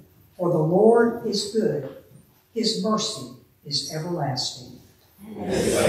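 A woman speaks calmly into a microphone in a reverberant room.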